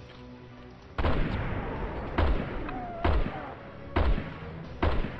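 Rifle shots boom one after another at a steady pace.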